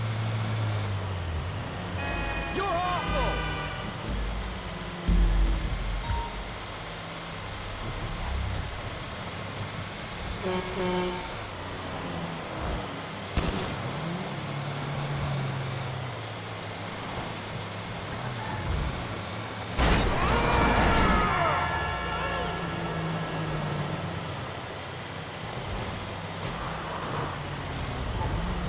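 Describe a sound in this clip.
A heavy truck engine rumbles steadily as it drives.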